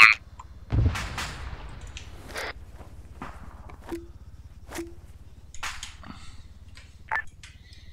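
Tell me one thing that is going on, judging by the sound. A rifle clicks and rattles as it is handled close by.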